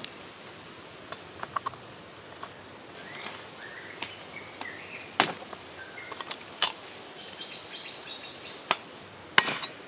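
Shell pieces crack and snap as they are broken off by hand.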